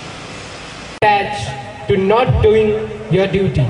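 A young man speaks into a microphone over loudspeakers in an echoing hall.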